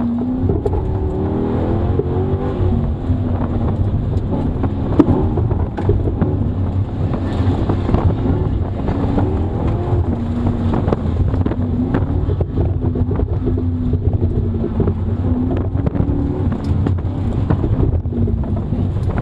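Tyres squeal on pavement through tight turns.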